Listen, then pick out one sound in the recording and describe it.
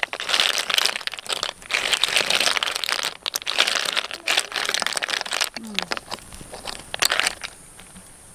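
Snail shells clatter and clack against each other as a hand stirs them.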